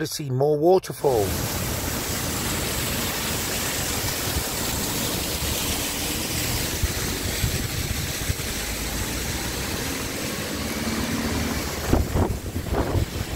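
A waterfall splashes over rocks.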